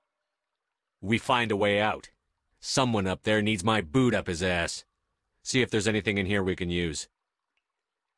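A man speaks firmly and calmly, close by.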